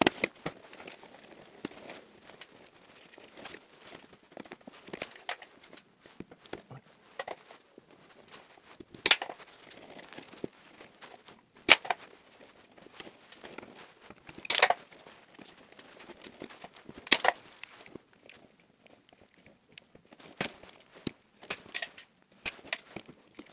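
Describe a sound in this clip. Stiff wires rustle and scrape against plastic as they are bent and pushed into place.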